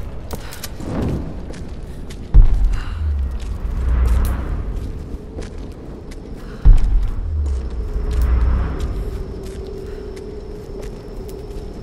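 A torch flame crackles and flickers.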